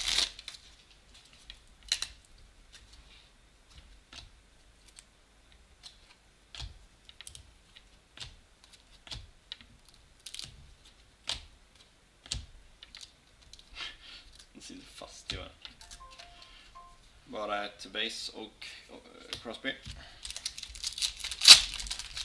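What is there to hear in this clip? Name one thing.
Trading cards click and rustle as they are shuffled by hand.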